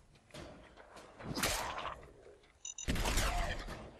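A ghoul snarls and growls.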